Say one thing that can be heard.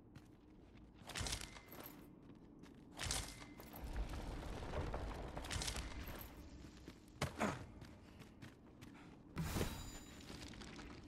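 Hands and boots scrape against rock in bursts during a climb.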